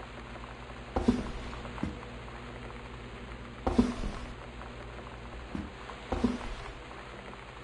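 A wooden sliding door slides open with a knock.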